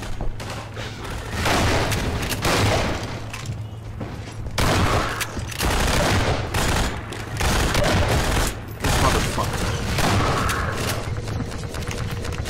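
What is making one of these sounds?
Shotgun blasts boom in quick bursts.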